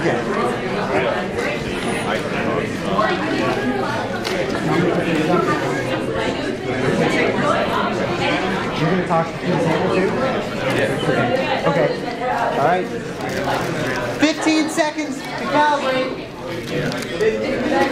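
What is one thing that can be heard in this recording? A crowd of young people chatters all around in a large echoing hall.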